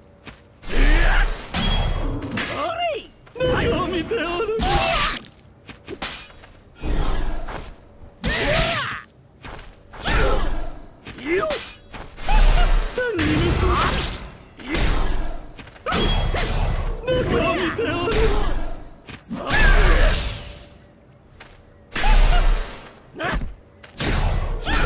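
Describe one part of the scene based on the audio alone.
Magic energy crackles and whooshes.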